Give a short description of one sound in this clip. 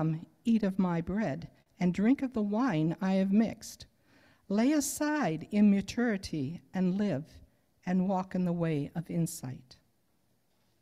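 An older woman reads aloud calmly into a microphone.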